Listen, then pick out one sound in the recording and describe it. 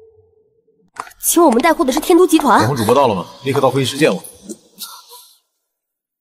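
A young woman talks on a phone, firmly.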